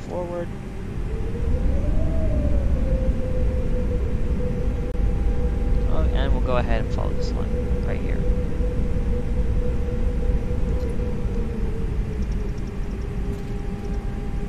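A jet engine hums steadily with a low rumble as the airliner taxis.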